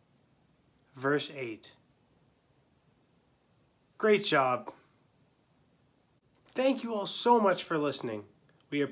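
A young man speaks calmly and clearly, close to a microphone, in short bursts with pauses.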